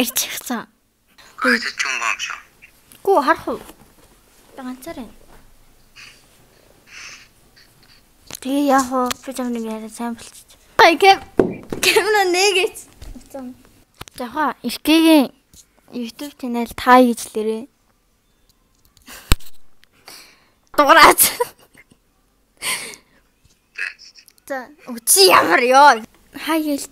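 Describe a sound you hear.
A young woman talks and laughs close by, with animation.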